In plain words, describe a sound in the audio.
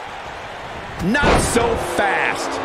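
A heavy body slams onto a wrestling mat with a thud.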